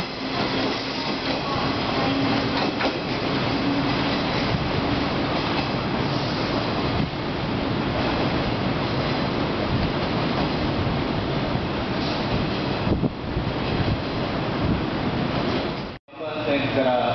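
An electric multiple-unit train rolls away into the distance.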